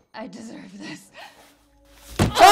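A young woman speaks in a strained, pleading voice.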